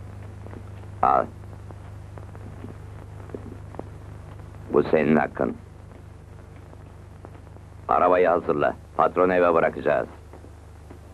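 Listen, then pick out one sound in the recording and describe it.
A middle-aged man speaks in short, firm lines.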